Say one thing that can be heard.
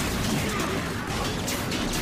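Laser guns fire in quick bursts.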